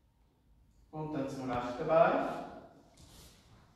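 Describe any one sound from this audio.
A man speaks loudly and briefly close by.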